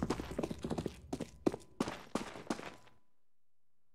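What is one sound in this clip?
Footsteps tread on hard ground.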